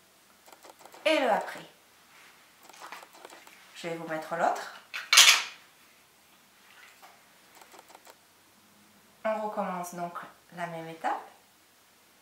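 A woman speaks close to a microphone, with pauses.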